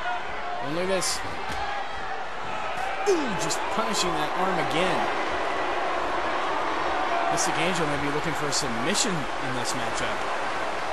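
Blows land with sharp slaps.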